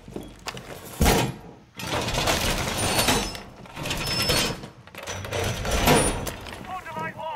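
A heavy metal panel clanks and rattles as it is hammered into place against a wall.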